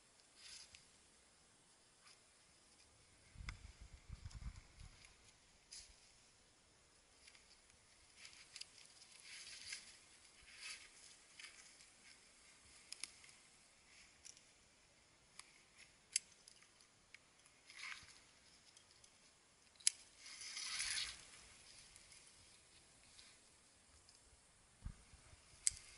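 A rope rubs and creaks against tree bark.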